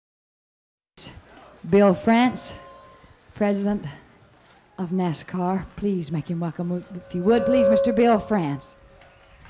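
A woman sings through loudspeakers outdoors.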